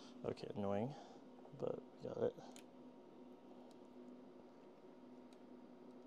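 Test probe clips click and rustle as they are handled.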